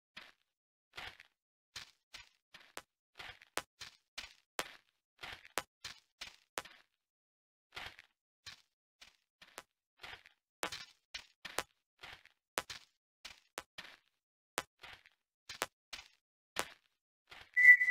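Gunfire crackles in short, quick shots.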